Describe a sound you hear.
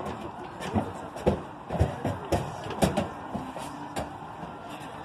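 Drums boom in a quick series of loud beats.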